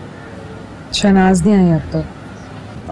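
A young woman speaks softly into a phone.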